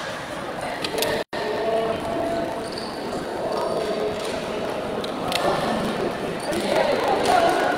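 Young women call out to each other in a large echoing hall.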